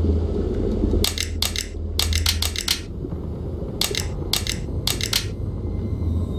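Puzzle pieces click sharply as they turn, in quick bursts.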